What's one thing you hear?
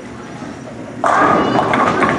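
Bowling pins crash and clatter in an echoing hall.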